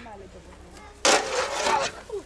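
A weapon strikes hard against a wooden shield.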